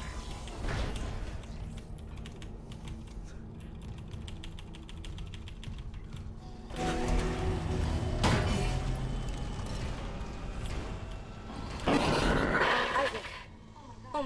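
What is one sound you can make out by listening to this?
A deep mechanical rumble drones and swells.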